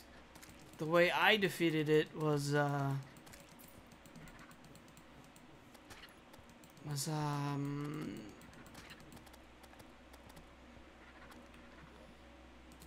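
Quick clicks and zaps of game attacks keep coming.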